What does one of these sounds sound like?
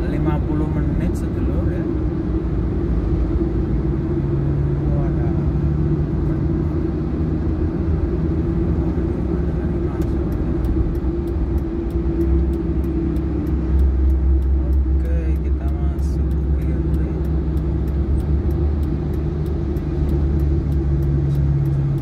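Rain patters on a car windshield.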